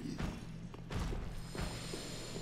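A sword swings through the air.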